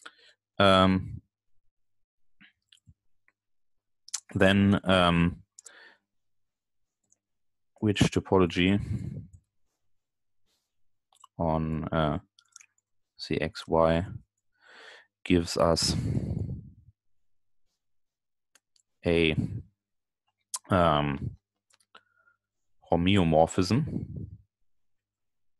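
A man speaks calmly in short phrases over an online call, with pauses between.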